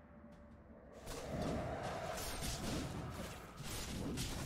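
Weapons clash and spells crackle in a fast game battle.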